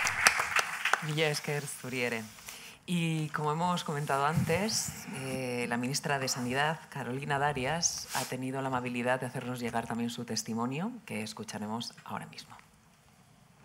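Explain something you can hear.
A young woman speaks warmly into a microphone.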